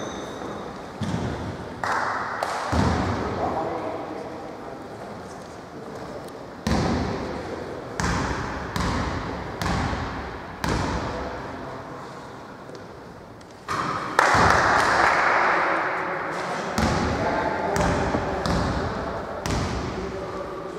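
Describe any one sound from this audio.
A basketball bounces on a wooden floor, echoing through a large hall.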